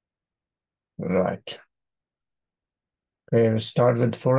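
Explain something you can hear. A middle-aged man speaks calmly into a close microphone.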